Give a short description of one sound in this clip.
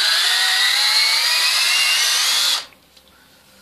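A cordless drill whirs loudly, rising in pitch as it bores into wood.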